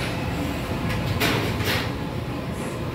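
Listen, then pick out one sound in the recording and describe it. A plastic lid is lifted and knocks.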